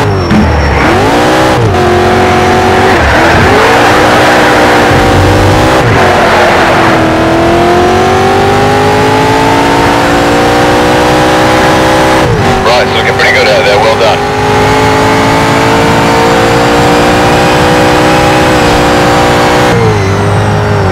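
A car engine roars loudly, revving up and dropping sharply with each gear change.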